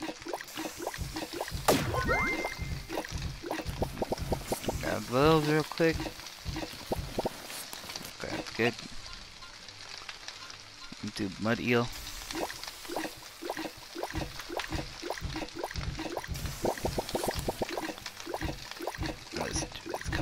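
Food clatters and sizzles in a pan with quick tapping.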